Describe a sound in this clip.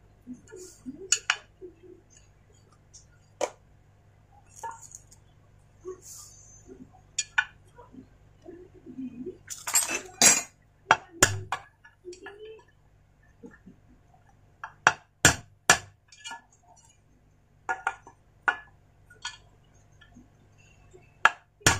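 Metal tools click and clink against a metal part.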